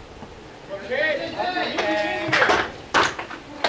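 Young men shout and cheer loudly outdoors.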